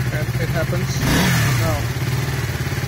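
A motorcycle engine revs briefly and settles back.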